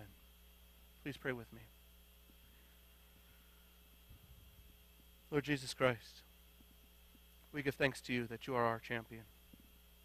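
A man speaks slowly and calmly through a microphone, with long pauses.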